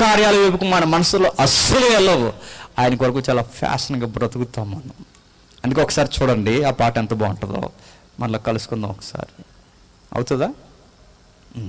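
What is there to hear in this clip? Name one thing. A young man speaks with animation into a microphone over loudspeakers.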